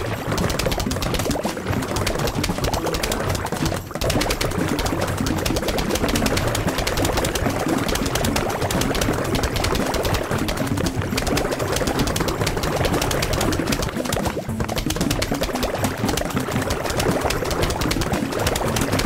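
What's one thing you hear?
Game plants fire rapid, constant popping shots.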